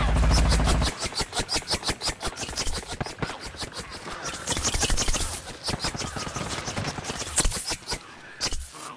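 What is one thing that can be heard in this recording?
Quick footsteps patter on wooden boards.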